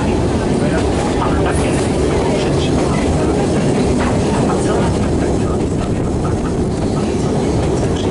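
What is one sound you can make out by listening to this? A narrow-gauge train rumbles as it rolls along the track.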